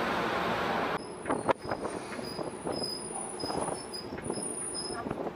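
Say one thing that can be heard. The diesel engine of an armoured tracked vehicle rumbles as the vehicle drives.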